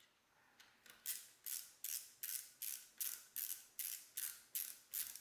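A metal part slides back and forth with a rhythmic scraping.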